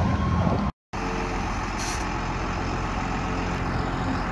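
A fire truck engine idles with a low hum.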